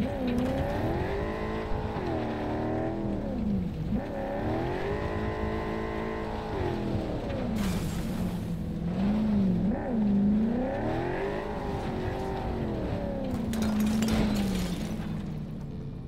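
A car engine revs and roars as a vehicle drives over rough ground.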